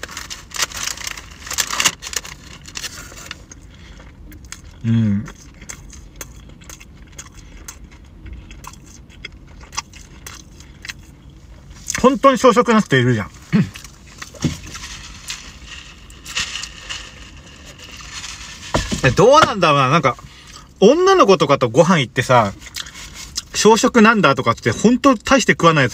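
A paper wrapper crinkles.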